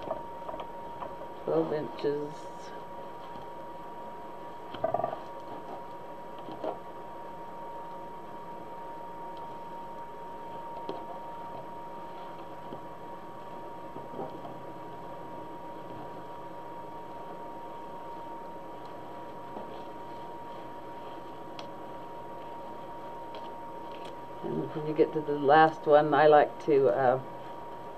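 Plastic mesh ribbon rustles and crinkles as it is handled.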